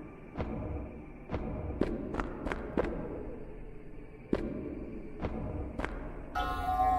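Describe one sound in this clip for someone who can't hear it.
A sword slashes with sharp whooshing strikes.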